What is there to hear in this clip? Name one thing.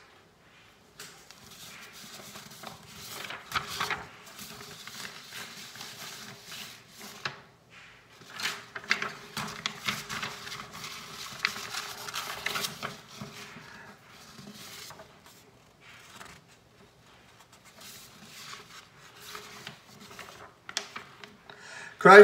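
A man speaks quietly and softly close by.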